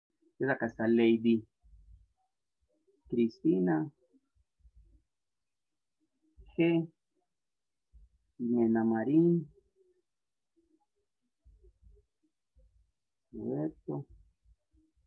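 A man speaks calmly in short phrases over an online call.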